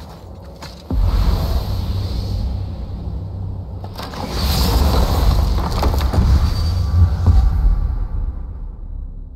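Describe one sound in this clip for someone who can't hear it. A magical portal hums and roars with a shimmering rush.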